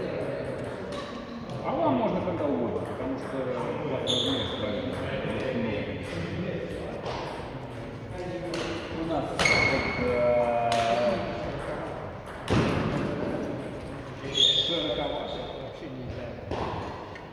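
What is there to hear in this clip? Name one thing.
Rackets sharply strike a shuttlecock in a large echoing hall.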